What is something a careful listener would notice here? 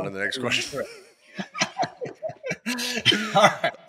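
A middle-aged man laughs heartily into a microphone.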